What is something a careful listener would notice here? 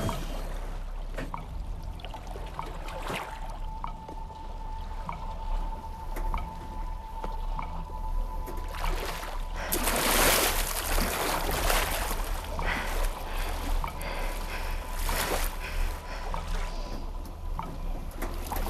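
Waves slosh and churn on open water.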